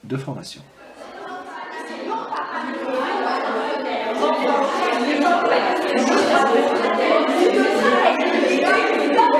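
A group of women chatter and laugh in a large echoing room.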